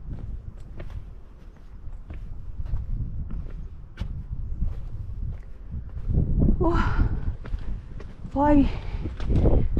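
Footsteps scrape and tap on bare rock.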